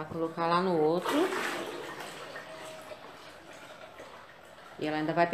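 Water pours from a bucket into a tub.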